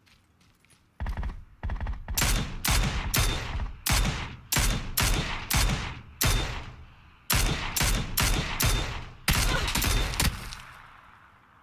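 A rifle fires shot after shot, loud and sharp.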